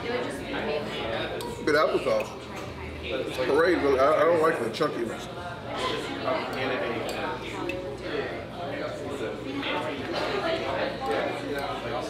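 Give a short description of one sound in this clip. People chatter in the background of a busy room.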